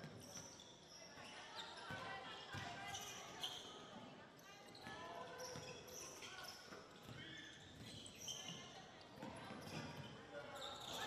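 A small crowd murmurs and calls out in a large echoing gym.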